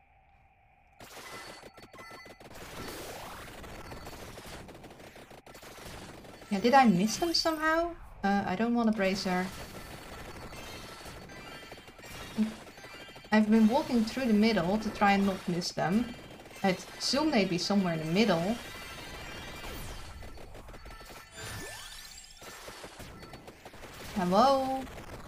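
Electronic game sound effects crackle and chime rapidly.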